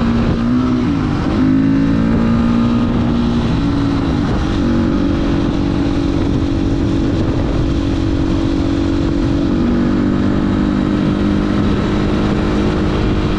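A single-cylinder dirt bike engine drones as it cruises along a paved road, shifting gears.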